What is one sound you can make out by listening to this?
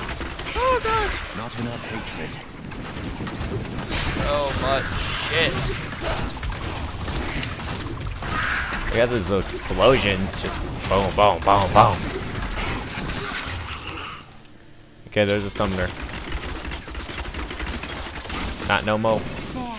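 Fiery spells blast and crackle in a fast fight.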